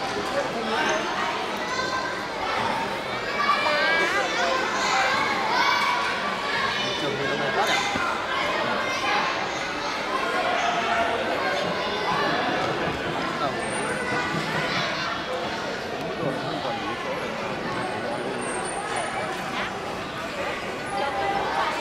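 A crowd of children and adults chatter and call out in a large echoing hall.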